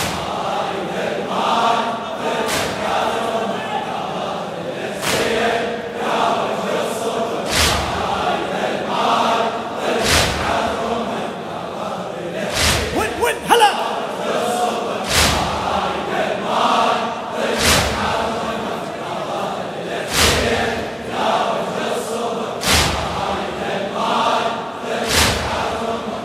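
A man chants loudly into a microphone in a large echoing hall.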